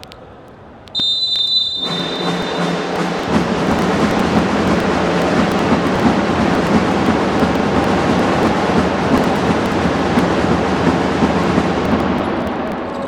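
A crowd roars and cheers in a large echoing arena.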